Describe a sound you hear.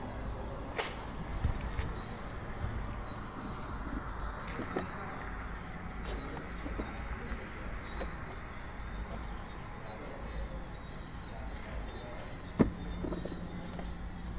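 Things rattle and knock inside a car.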